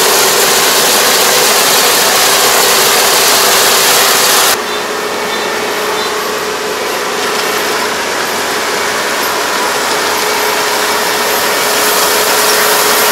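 A harvester cuts and threshes rice stalks with a rattling whir.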